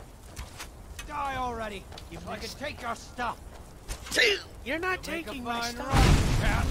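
A man shouts angrily from a short distance.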